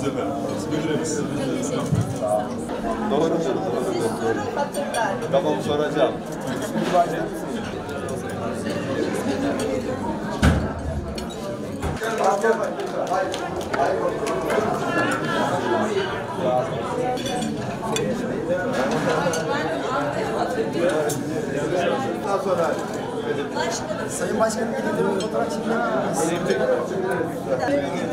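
Cutlery and dishes clink on tables.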